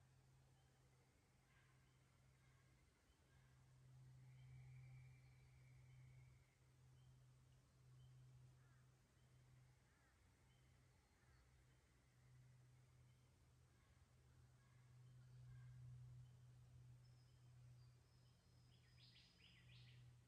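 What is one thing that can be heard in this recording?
Water trickles gently over stones.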